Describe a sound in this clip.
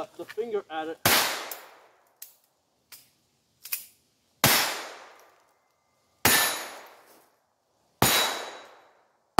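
A handgun fires loud single shots that echo outdoors among trees.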